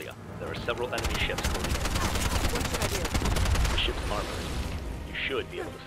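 A heavy gun fires rapid bursts.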